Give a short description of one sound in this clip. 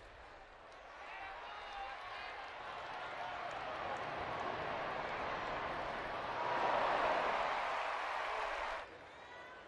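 A large crowd cheers loudly outdoors, swelling and then fading.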